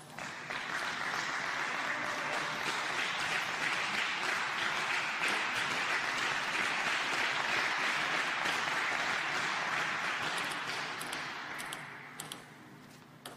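A crowd applauds loudly in a large hall, then fades.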